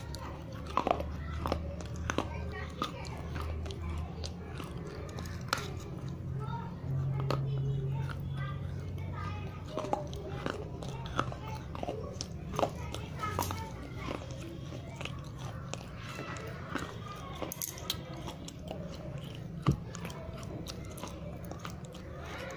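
A young woman makes wet mouth sounds close to a microphone.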